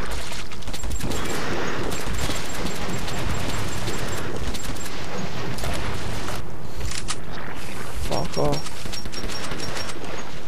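A rifle fires in rapid shots.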